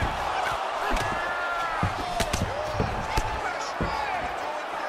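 Punches thud against a fighter's body.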